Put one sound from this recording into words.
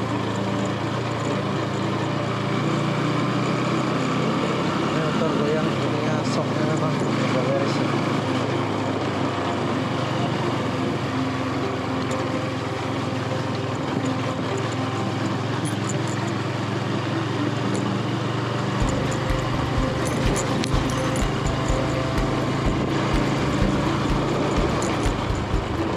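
Tyres crunch and rumble over a dirt track.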